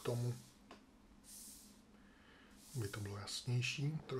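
Cards slide and tap softly on a table.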